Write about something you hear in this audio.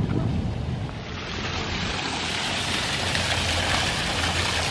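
Water splashes steadily from a fountain's jets.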